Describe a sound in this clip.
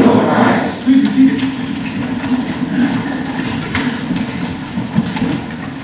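People shuffle and settle into wooden pews with soft creaks.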